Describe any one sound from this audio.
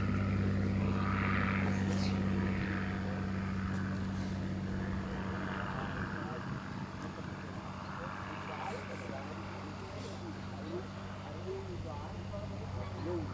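A small model jet engine hums steadily close by.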